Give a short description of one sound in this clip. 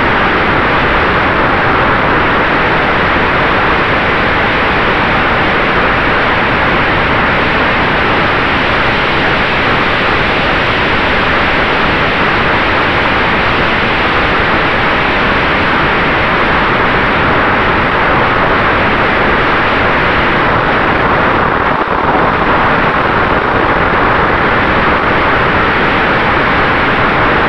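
A small electric motor hums with a steady whine.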